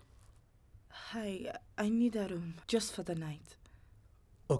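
A young woman speaks quietly, close by.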